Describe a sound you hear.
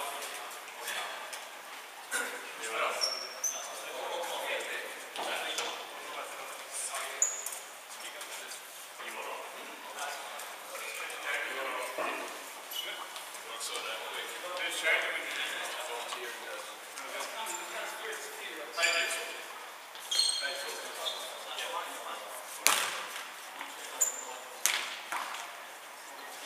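Sneakers squeak sharply on a wooden floor.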